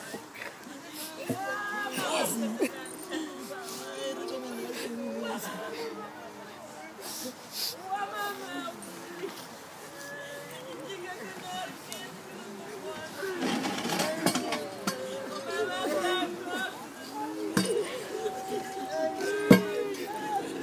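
A woman sobs and wails nearby.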